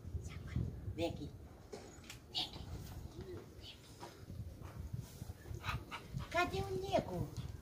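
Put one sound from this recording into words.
An elderly woman talks to a dog in a coaxing voice nearby.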